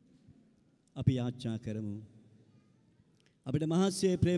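An older man speaks with emphasis into a microphone, heard through loudspeakers.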